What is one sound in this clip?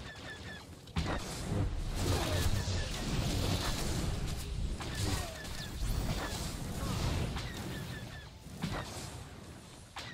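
Lightsaber strikes crackle and hum in a video game battle.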